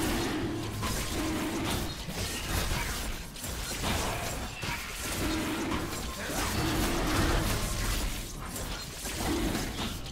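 Game sound effects of spells and strikes ring out in quick succession.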